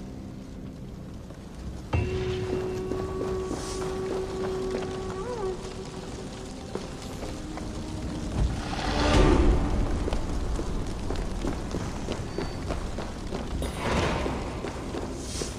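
Footsteps crunch on a stony floor.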